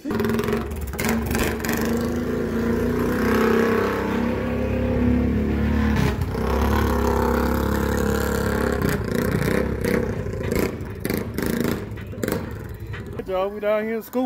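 An all-terrain vehicle engine rumbles and revs nearby.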